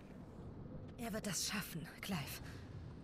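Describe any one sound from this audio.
A young woman speaks softly and warmly.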